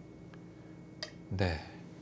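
A stone clicks onto a wooden game board.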